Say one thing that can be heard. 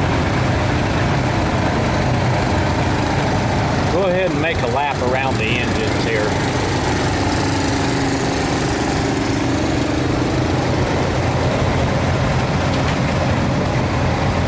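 A steam engine idles with a low, steady rumble close by.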